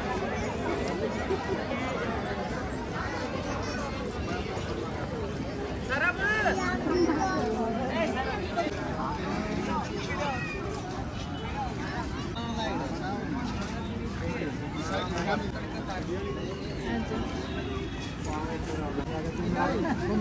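A crowd chatters outdoors in the background.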